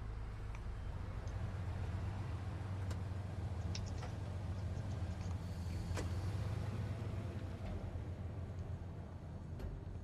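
A car engine rumbles as a car drives slowly away.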